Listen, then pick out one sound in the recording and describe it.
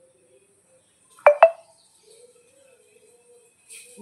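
A metal container clinks.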